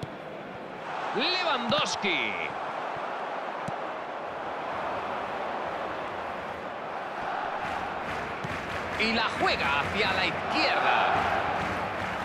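A crowd whistles and chants loudly.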